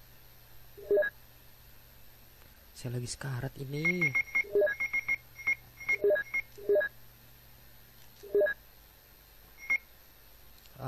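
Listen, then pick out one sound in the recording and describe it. A game menu beeps in short blips as items are selected.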